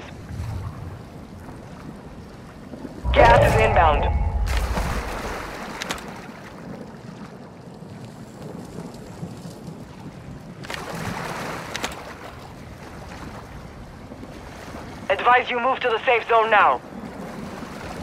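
Water splashes softly as a swimmer paddles.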